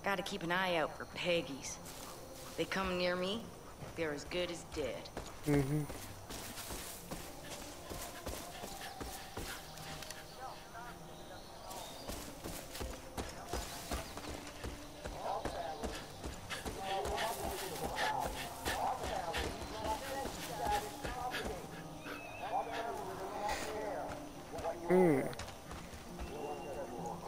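Footsteps crunch through dry grass and over a dirt path.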